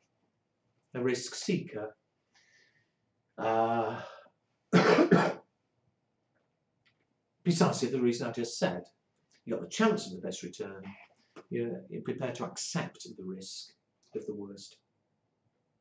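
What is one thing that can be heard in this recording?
An elderly man lectures calmly into a close microphone, in short phrases with pauses.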